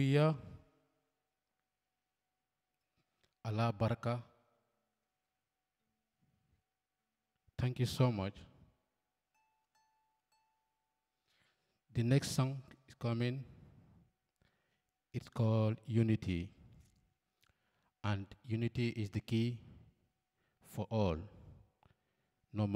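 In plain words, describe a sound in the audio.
A man sings short phrases into a microphone, with pauses between them.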